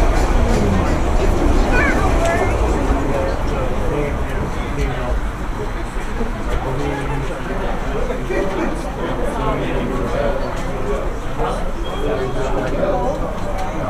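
A train engine hums low and steady.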